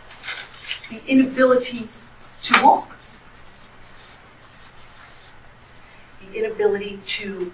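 A woman speaks a few words across a room.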